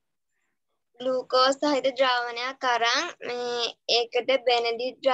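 A girl speaks clearly and cheerfully over an online call.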